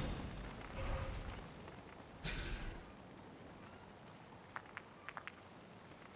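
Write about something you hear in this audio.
Flames crackle on the ground.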